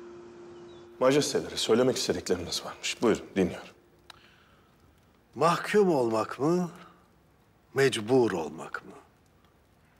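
An elderly man speaks calmly and slowly.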